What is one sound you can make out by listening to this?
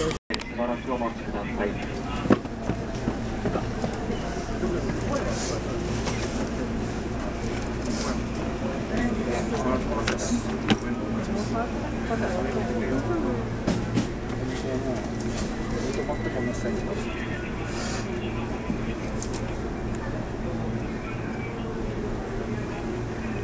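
Another train rolls past close alongside.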